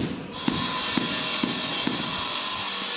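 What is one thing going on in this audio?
A rubber mallet taps on floor tiles.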